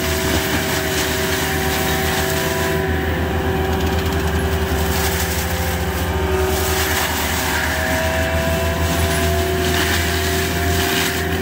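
A mulcher head grinds and shreds brush and wood.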